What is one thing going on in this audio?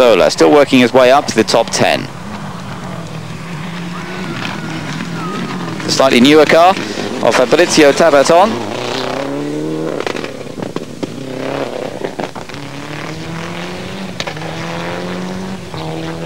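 A rally car engine roars loudly, revving up and down through the gears.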